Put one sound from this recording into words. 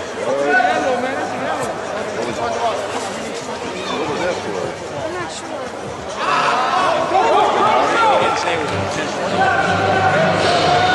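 Young players and onlookers shout and call out across a large echoing hall.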